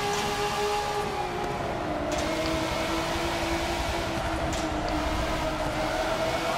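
A car engine roars steadily at high revs, its pitch dipping slightly and then holding.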